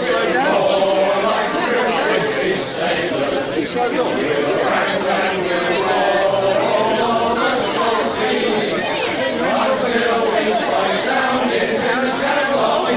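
A men's choir sings together through loudspeakers outdoors.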